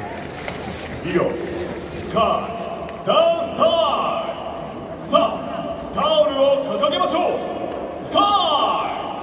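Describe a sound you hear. Music plays loudly over stadium loudspeakers.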